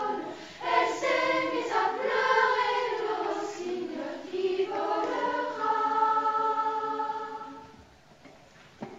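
A children's choir sings together in a reverberant hall.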